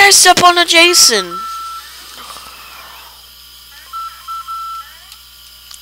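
Short electronic game beeps sound.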